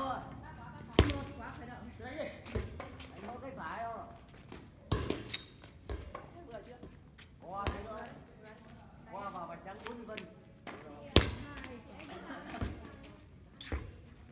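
A volleyball is hit with sharp slaps, again and again.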